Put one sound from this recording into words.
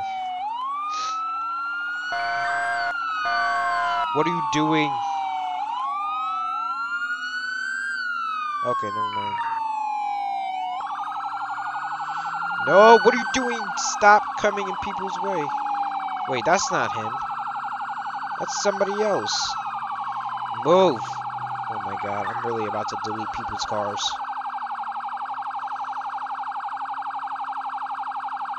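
A police siren wails and rises and falls repeatedly.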